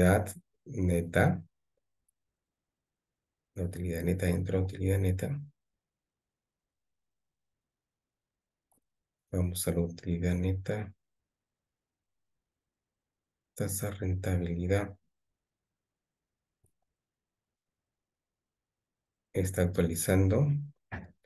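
An elderly man speaks calmly through a microphone in short phrases with pauses.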